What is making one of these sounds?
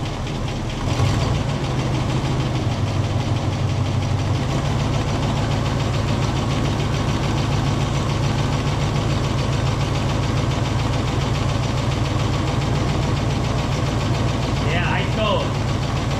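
A car engine starts and idles steadily.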